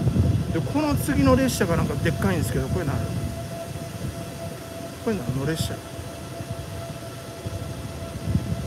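A train engine rumbles low and steady under a large echoing roof.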